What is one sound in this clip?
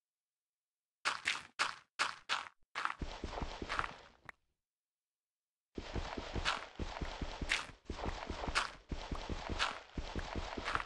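Dirt blocks crunch and thud as they are dug and placed.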